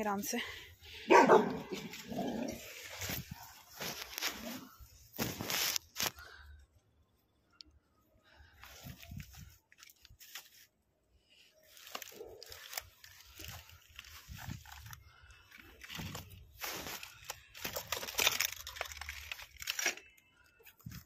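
Footsteps crunch over loose rubble and debris.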